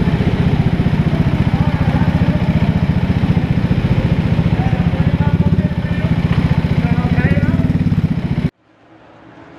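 A go-kart engine buzzes loudly and steadily close by.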